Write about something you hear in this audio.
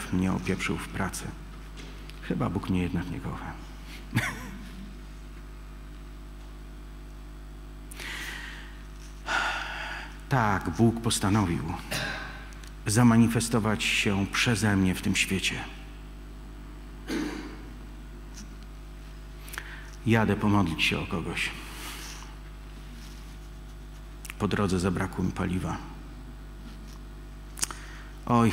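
A middle-aged man speaks calmly into a microphone in a hall, with pauses.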